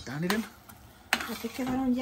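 A spoon stirs thick food in a pot.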